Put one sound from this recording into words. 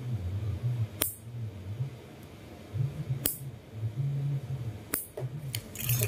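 A toenail clipper snaps through a toenail.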